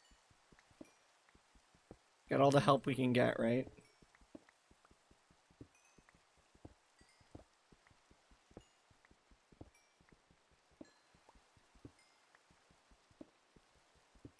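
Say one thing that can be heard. A pickaxe taps rapidly at stone, with soft repeated knocks.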